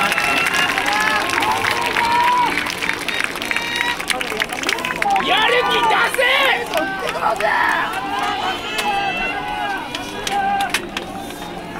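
A crowd of fans cheers and calls out loudly outdoors.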